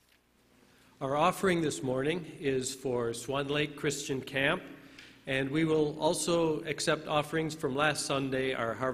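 An older man speaks through a microphone in a large echoing hall.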